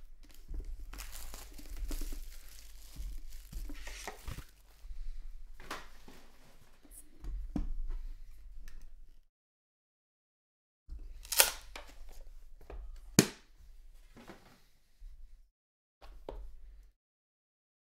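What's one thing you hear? Cardboard packaging rustles and scrapes as hands open a box.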